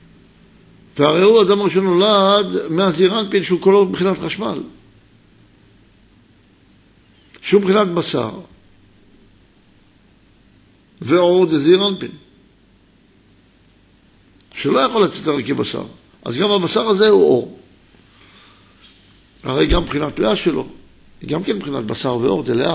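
A middle-aged man speaks calmly and with pauses into a microphone.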